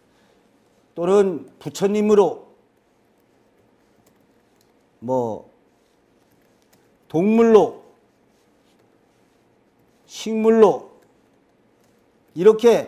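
A man speaks slowly in short phrases close to a microphone, with pauses between them.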